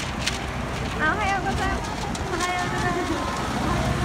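People by the roadside call out and cheer.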